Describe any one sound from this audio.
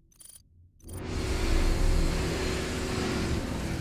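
Game action noise rumbles loudly.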